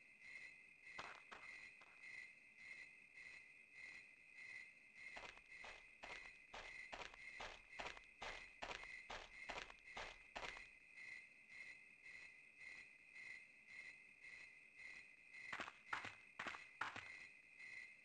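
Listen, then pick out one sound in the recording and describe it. Footsteps crunch slowly on a dirt path.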